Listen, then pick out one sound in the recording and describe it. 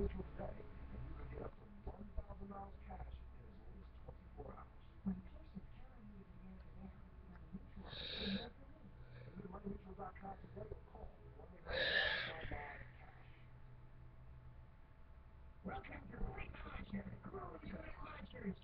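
A young girl talks quietly and slowly, close to a microphone.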